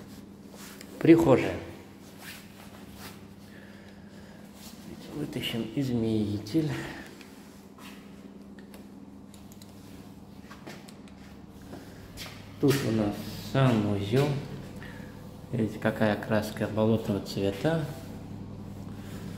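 A young man speaks calmly close by, in short bursts with pauses.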